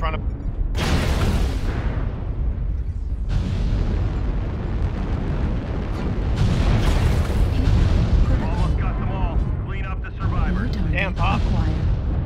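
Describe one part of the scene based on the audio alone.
Laser weapons fire in crackling bursts.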